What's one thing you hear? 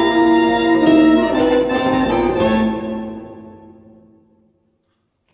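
A saxophone ensemble plays a loud closing chord that rings out and fades in a reverberant room.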